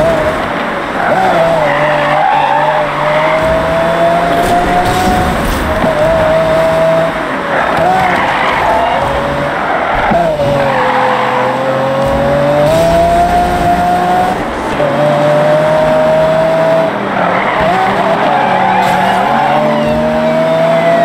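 Tyres squeal as a car slides through bends.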